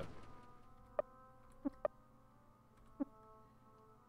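Short electronic blips sound as menu options are picked.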